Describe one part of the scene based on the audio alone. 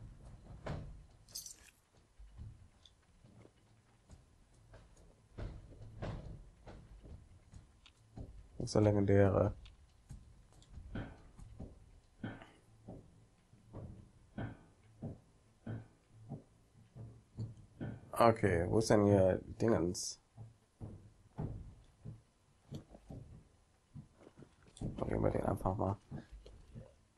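Footsteps thud steadily over hard ground.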